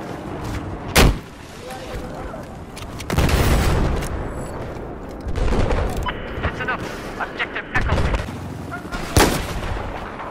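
A rifle fires sharp single gunshots.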